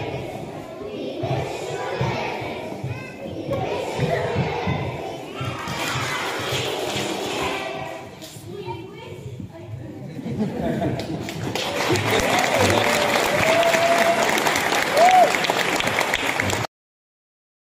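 A choir of young children sings together in a large echoing room.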